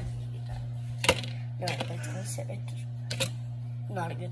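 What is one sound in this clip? A plate clinks and clatters against dishes.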